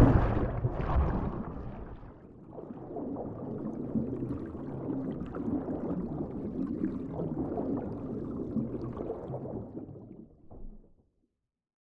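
Water churns and bubbles, muffled as if heard underwater.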